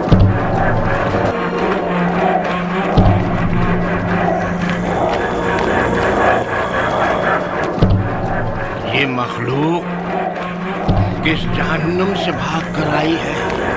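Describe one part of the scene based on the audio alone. An elderly man speaks sternly.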